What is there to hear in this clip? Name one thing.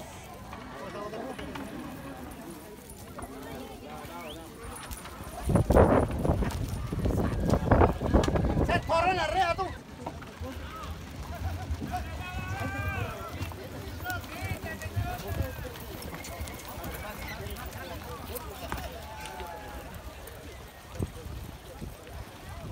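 A crowd of men and women chatter and call out outdoors.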